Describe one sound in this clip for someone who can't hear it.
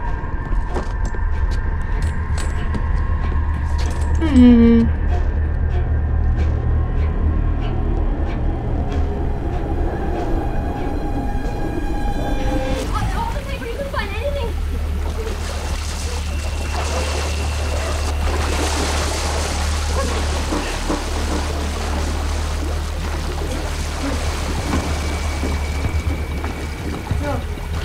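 A young woman speaks and reacts with animation close to a microphone.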